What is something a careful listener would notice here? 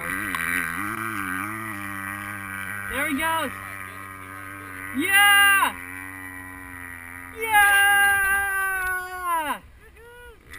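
A motorcycle engine revs repeatedly, rising and falling in pitch.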